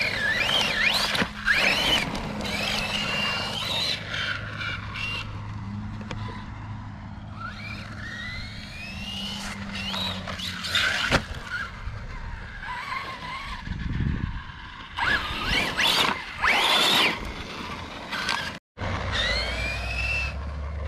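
An electric toy car motor whines, rising and falling in pitch as it speeds up and slows down.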